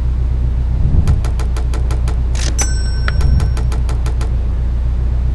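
A rapid series of short electronic ticks counts up.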